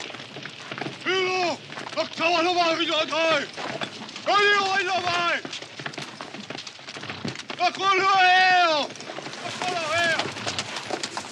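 A man shouts loudly from horseback.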